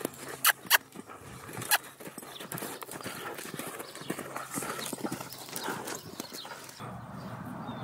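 A horse's hooves thud softly on sand as it trots.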